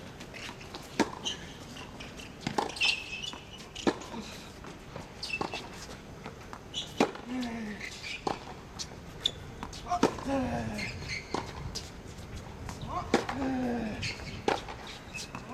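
Tennis rackets strike a ball back and forth in a steady rally, outdoors.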